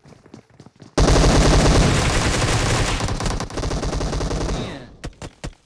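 Rapid gunfire rattles at close range.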